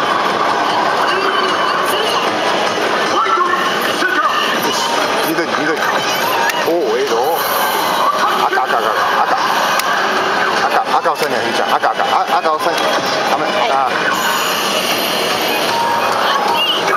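An arcade game machine plays loud, busy music through its speakers.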